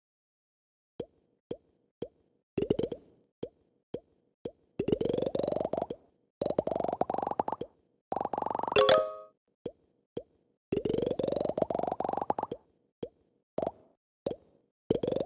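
A game ball bounces with short, soft blips.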